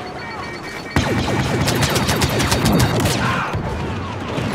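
A blaster rifle fires a rapid burst of shots.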